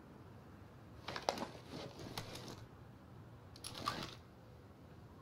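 A weapon is handled with metallic clicks and rattles.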